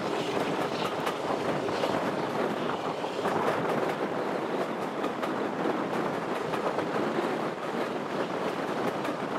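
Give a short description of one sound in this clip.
Wheels click over rail joints.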